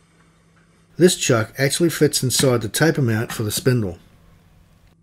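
Heavy metal parts clink and scrape against each other.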